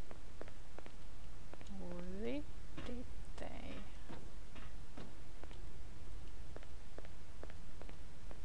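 Footsteps tread on a hard stone floor.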